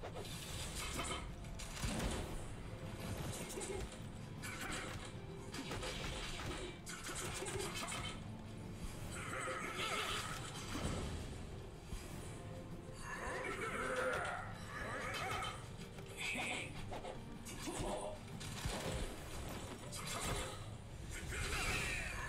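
Game sound effects of blades clashing and strikes ring out.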